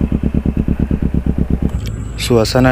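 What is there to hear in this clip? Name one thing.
A motorcycle engine rumbles up close.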